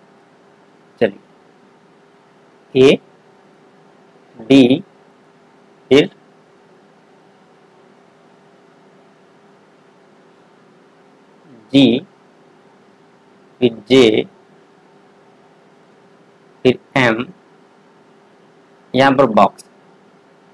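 A young man speaks calmly in short bursts, close to a microphone, with long pauses.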